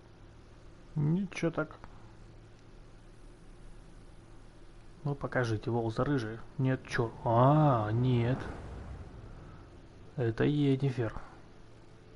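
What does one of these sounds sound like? A man speaks in a low, calm voice in short bursts.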